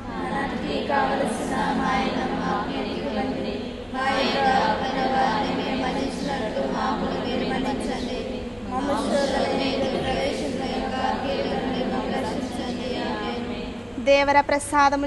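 A group of women pray aloud together in a steady murmur.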